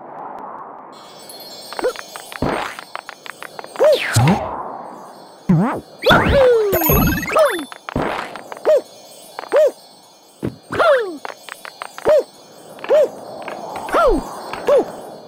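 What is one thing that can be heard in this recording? Bright sparkling chimes ring out.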